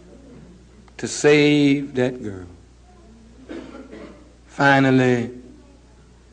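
A man speaks forcefully into a microphone in a large room, drawing out his words.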